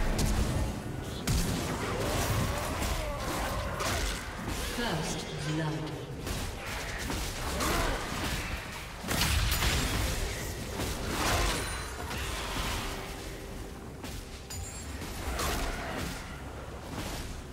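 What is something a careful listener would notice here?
Game battle effects of clashing blows and bursting spells sound in quick succession.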